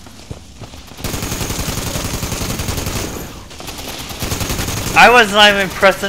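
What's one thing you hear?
A rapid-fire gun shoots in a fast, steady stream of shots.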